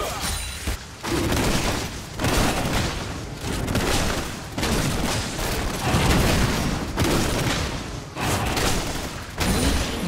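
A dragon roars and flaps its wings.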